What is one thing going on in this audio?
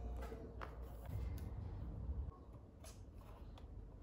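Cards flip and click on a metal ring.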